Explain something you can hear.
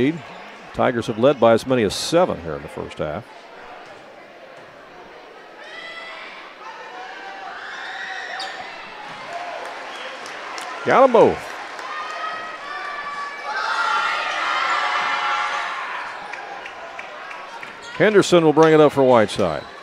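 A crowd in a large echoing gym murmurs and cheers.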